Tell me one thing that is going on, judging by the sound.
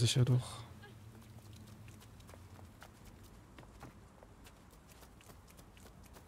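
Footsteps tap quickly on cobblestones.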